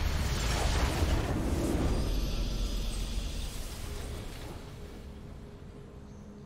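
A triumphant victory fanfare plays and slowly fades.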